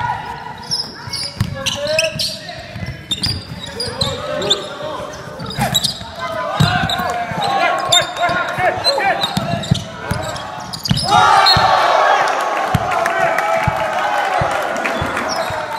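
Sneakers squeak sharply on a hard court in a large echoing hall.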